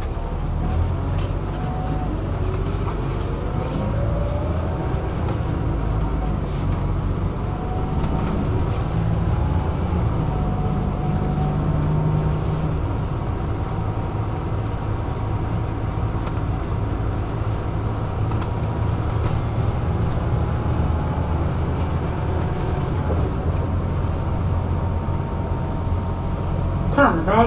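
Tyres roll on asphalt with a steady road noise.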